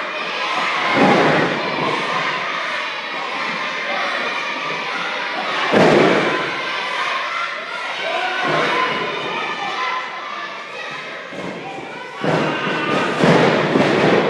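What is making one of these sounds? Bodies slam loudly onto a wrestling ring mat.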